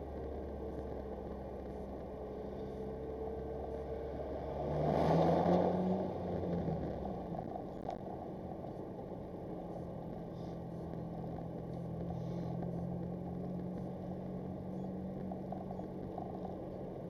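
A car engine hums steadily from inside as the car drives along a street.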